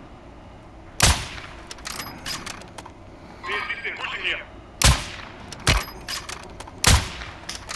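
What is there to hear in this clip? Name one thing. Sniper rifle shots crack loudly, each followed by a short echo.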